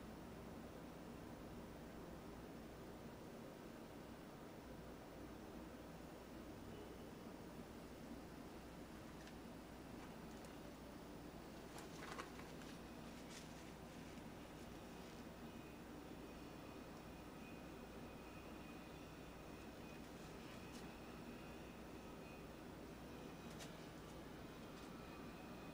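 A paintbrush brushes softly against canvas.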